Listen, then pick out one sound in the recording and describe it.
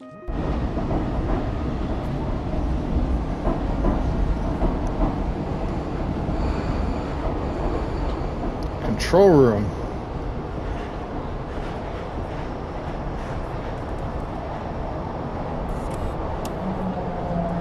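A train carriage rumbles low and steady.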